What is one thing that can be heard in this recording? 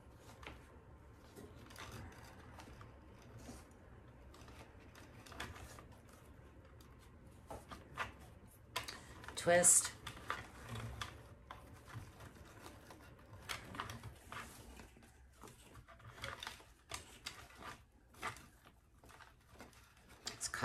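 Fabric ribbon rustles and crinkles as hands fold it and press it into a bow maker.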